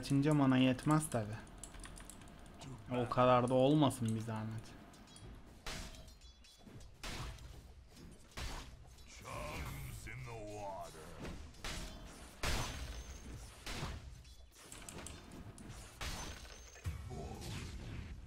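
Game weapons and spells clash and crackle in a fight.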